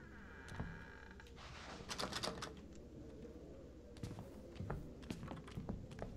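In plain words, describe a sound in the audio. A wooden window creaks and scrapes open.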